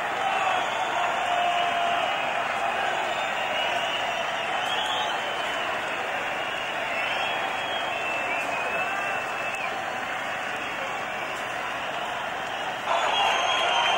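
A large crowd cheers and whistles in a big open space.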